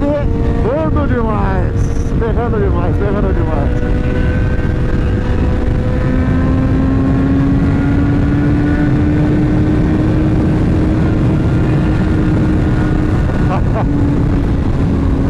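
A motorcycle engine hums steadily at speed, rising and falling in pitch.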